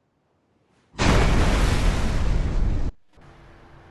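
Shells explode with a loud rumbling blast.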